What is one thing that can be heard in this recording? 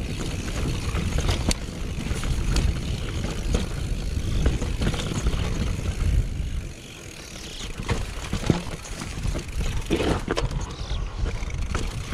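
Mountain bike tyres roll and rattle over a rocky dirt trail.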